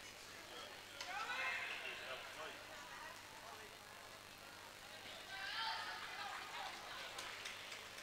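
Young players shout and cheer in a large echoing hall.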